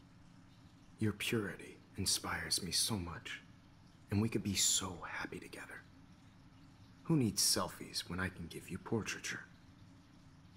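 A man speaks calmly in a smooth, low voice.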